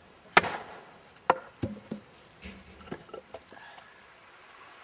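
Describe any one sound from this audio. Wood knocks and cracks as a log is split apart.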